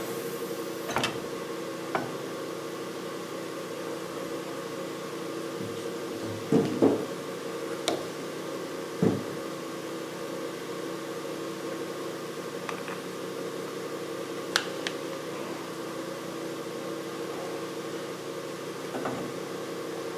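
Heavy metal parts clank and knock together as they are handled.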